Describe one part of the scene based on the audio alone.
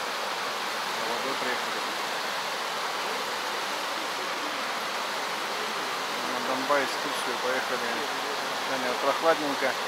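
A shallow stream rushes and gurgles over rocks.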